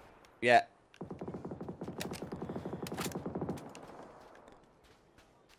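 Footsteps run over dry dirt.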